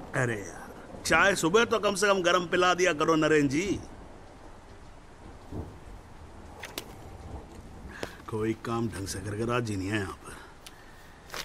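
An older man speaks gruffly.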